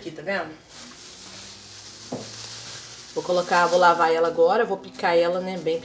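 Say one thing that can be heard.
A plastic bag crinkles.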